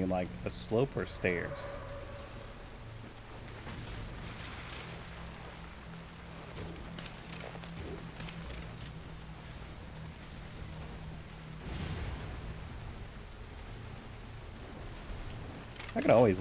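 Feet wade and splash through water.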